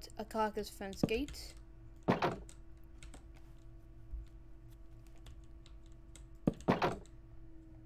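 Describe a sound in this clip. A block is set down with a short thud.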